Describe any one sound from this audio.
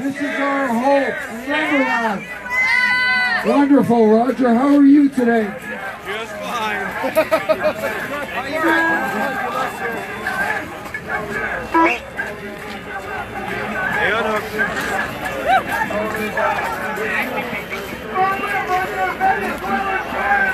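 Many voices of men and women chatter in a crowd outdoors.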